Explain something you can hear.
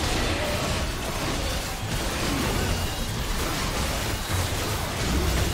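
Game combat effects crackle and boom in quick bursts.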